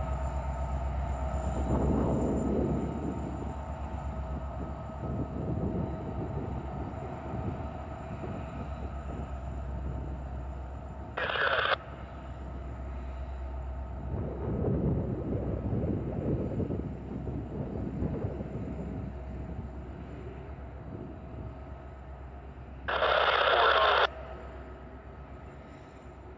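A diesel locomotive engine rumbles steadily in the distance.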